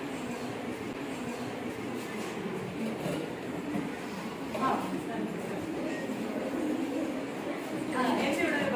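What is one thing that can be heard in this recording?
Teenagers talk and chatter in an echoing room.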